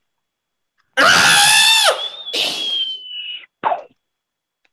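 A young man shouts and laughs loudly over an online call.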